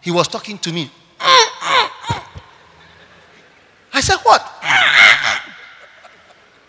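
A man preaches with animation through a microphone, echoing in a large open hall.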